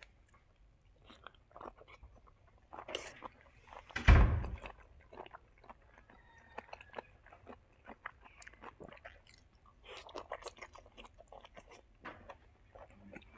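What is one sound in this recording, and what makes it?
A young man chews food noisily, smacking his lips close by.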